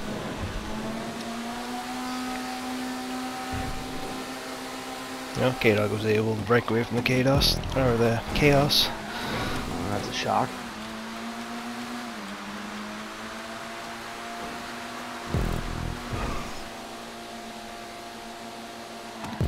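A car engine drones steadily and shifts in pitch.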